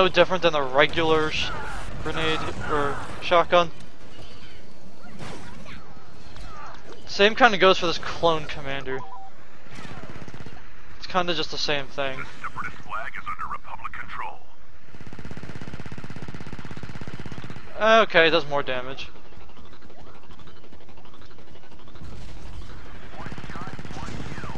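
Laser blasters fire in short bursts.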